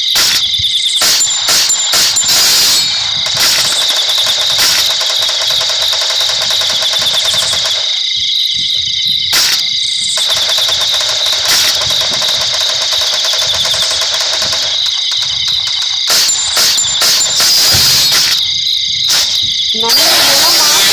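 A sniper rifle fires in a video game.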